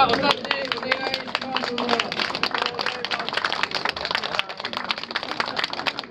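A crowd claps along in a steady rhythm.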